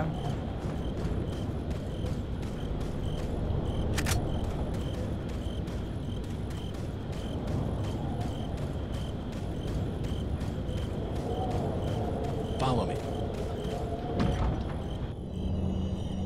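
Footsteps run quickly over dirt and gravel.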